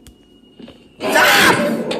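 An eerie old woman's voice lets out a loud, harsh scream suddenly.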